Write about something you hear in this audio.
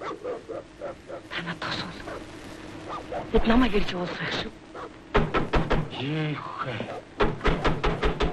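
An elderly man speaks with animation.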